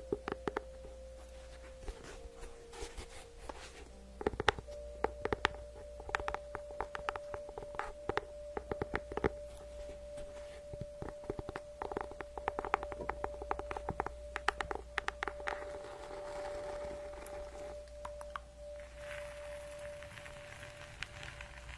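Fingernails tap and scratch on a book cover close to a microphone.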